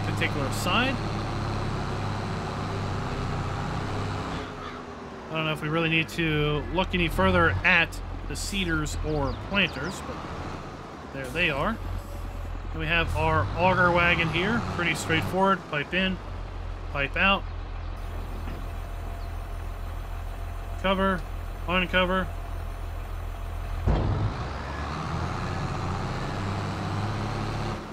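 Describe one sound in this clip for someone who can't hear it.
A tractor engine hums steadily as the tractor drives along.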